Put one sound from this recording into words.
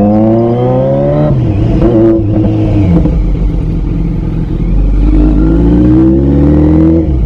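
A motorcycle engine hums and revs as it rides along a road.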